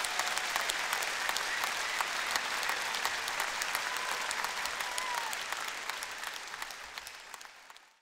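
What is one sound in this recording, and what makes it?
A large audience applauds loudly in a big echoing hall, then the applause fades.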